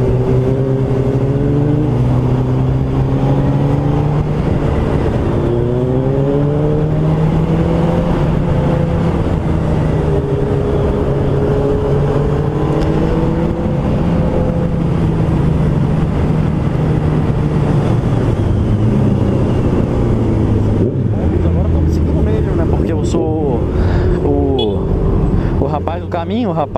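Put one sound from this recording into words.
A motorcycle engine hums steadily close by, rising and falling in pitch as it speeds up and slows.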